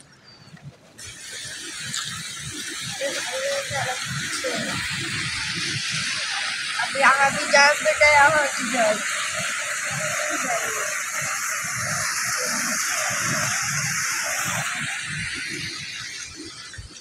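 Floodwater rushes and roars steadily.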